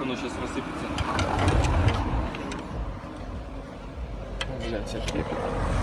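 A metal bar clinks against engine parts.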